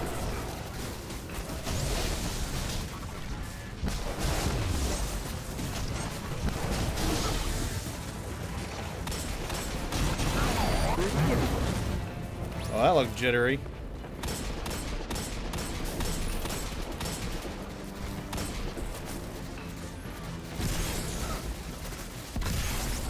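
Gunfire and energy blasts crackle from a game.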